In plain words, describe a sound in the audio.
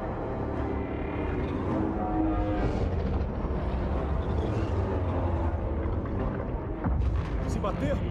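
A low, rumbling hum of a huge spaceship drones steadily.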